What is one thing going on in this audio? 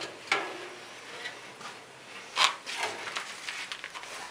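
A metal filter panel scrapes and rattles as it slides.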